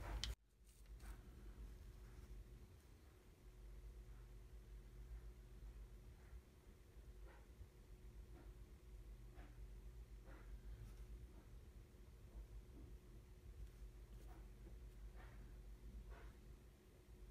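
Small wooden pieces click and tap softly as fingers fit them together.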